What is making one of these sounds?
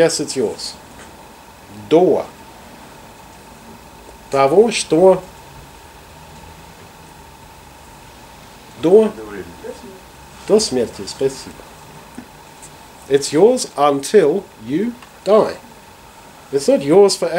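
A middle-aged man speaks calmly in short bursts with long pauses.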